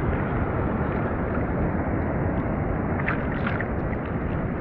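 Hands paddle and splash in the water.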